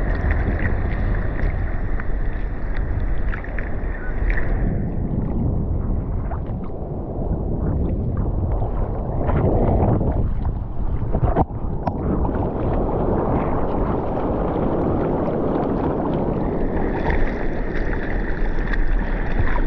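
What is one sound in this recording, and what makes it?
Water splashes and laps against a board close by.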